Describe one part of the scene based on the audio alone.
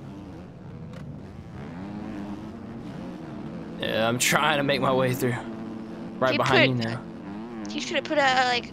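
A dirt bike engine drones and revs.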